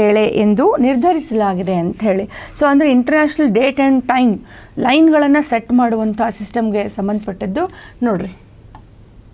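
A young woman speaks clearly and calmly into a close microphone.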